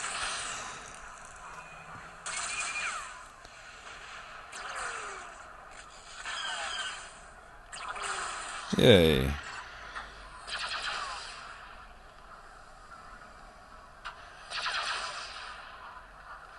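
Blaster shots zap in short bursts.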